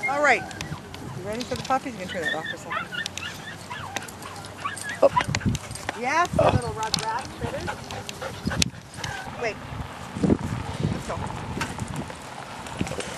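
Puppies yip and whine excitedly.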